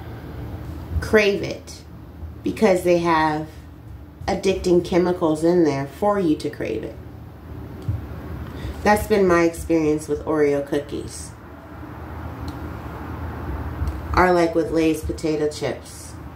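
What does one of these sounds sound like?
A woman speaks calmly and close by, in short phrases with pauses.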